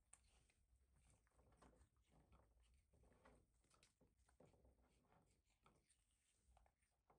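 A young macaque chews and smacks on pomegranate.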